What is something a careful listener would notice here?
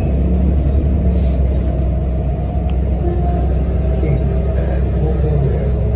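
A bus body rattles softly as it rolls.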